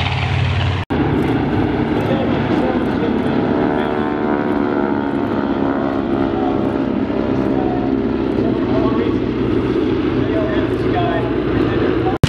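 Several propeller planes drone overhead as they fly past.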